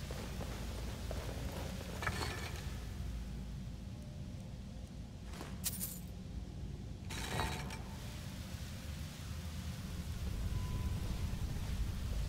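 Magic fire hums and crackles softly in both hands.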